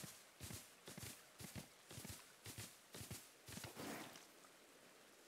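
Hooves pound the ground at a steady gallop.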